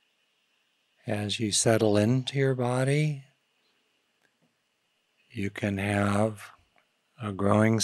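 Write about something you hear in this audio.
An older man speaks slowly and calmly into a close microphone, with long pauses.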